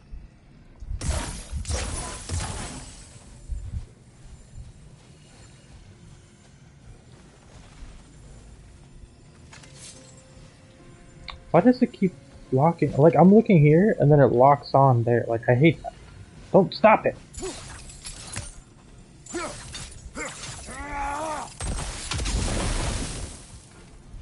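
A magical energy blast bursts with a loud whoosh.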